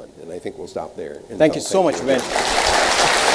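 An elderly man speaks through a microphone in a large hall.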